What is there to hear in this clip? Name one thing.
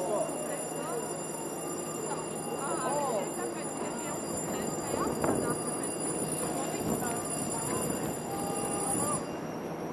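A fire engine's motor rumbles nearby outdoors.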